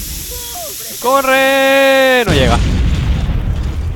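A fireball explodes with a deep boom.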